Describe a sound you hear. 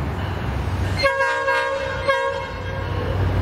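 A train horn blasts loudly.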